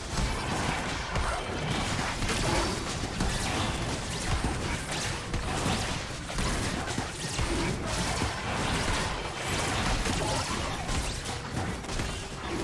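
Magic spells crackle and burst during a fantasy battle.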